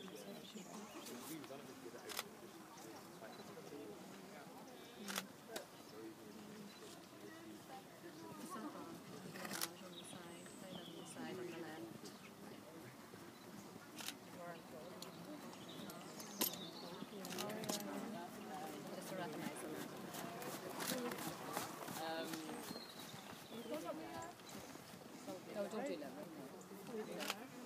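A horse's hooves thud softly on sand as it trots.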